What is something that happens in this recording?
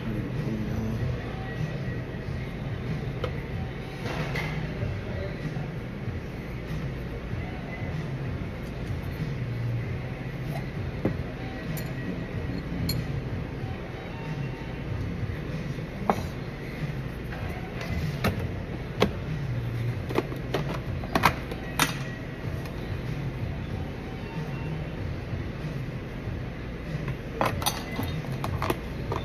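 Food is set into a wooden box with soft taps and clicks.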